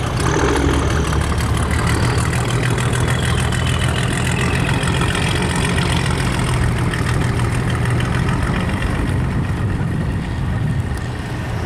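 A boat engine rumbles steadily nearby.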